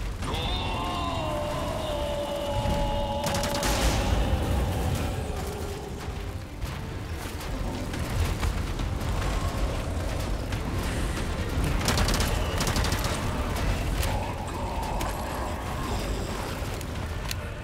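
Footsteps run on a metal walkway.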